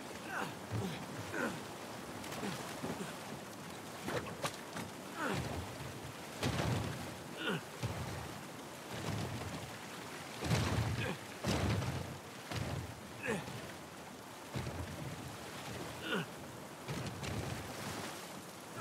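Water rushes and churns steadily.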